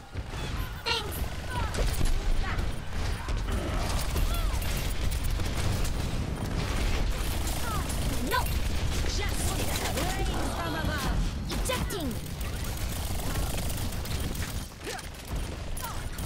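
Rapid laser gunfire blasts in short bursts.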